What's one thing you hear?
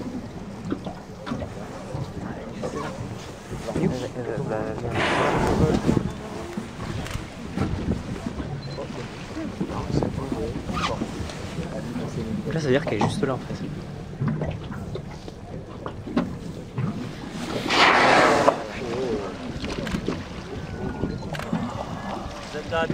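Wind gusts across the microphone on open water.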